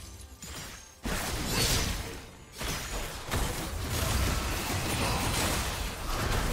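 Magic spells whoosh and blast in a fast fight.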